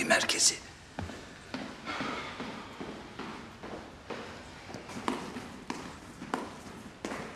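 Footsteps tread on stairs.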